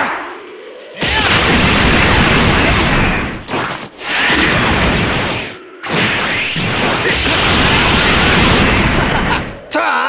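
A powering-up aura roars and crackles steadily.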